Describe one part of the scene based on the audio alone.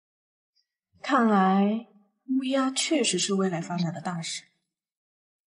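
A young woman speaks calmly in a low voice.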